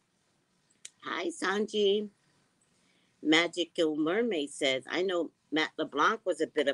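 A woman talks calmly and close up, heard through a microphone.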